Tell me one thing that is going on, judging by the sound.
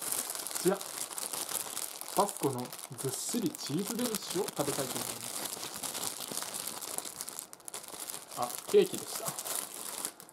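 A plastic wrapper crinkles in hands.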